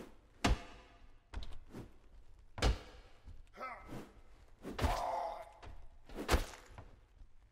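Sharp weapon blows strike with loud thuds.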